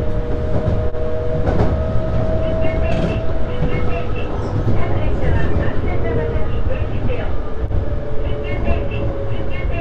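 Train wheels squeal and whine against the rails.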